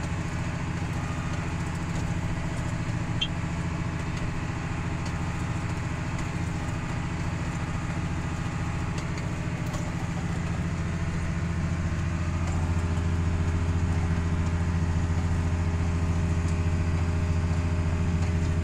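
A tractor engine drones under load, heard from inside the cab.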